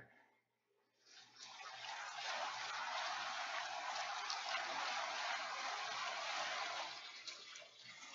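Water splashes and rushes against a sailing boat's hull.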